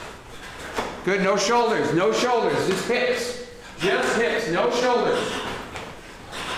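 A man calls out commands loudly in a room with some echo.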